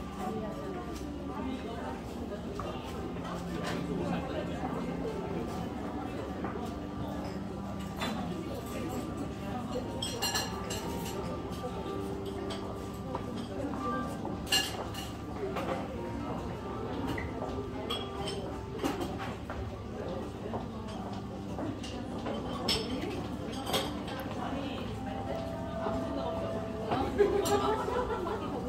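Distant voices murmur in a large, busy indoor space.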